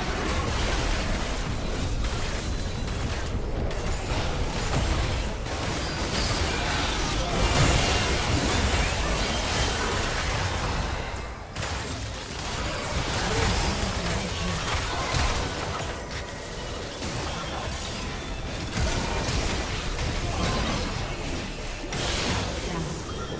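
Magic spells whoosh, crackle and burst in a busy fight.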